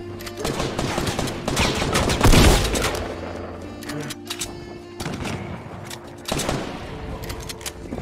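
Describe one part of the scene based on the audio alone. Rapid gunfire and impacts crackle from a video game.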